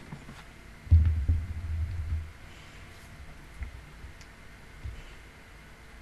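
A microphone is bumped with dull, low thuds.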